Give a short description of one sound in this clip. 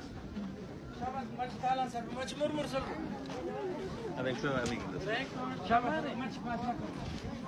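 A man speaks loudly close by.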